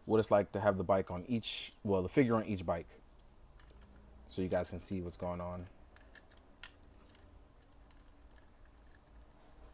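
Small plastic toy parts click and tap softly as they are handled.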